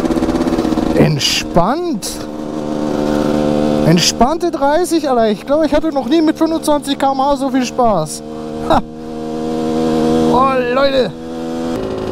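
A motorcycle engine revs up and down in quick bursts.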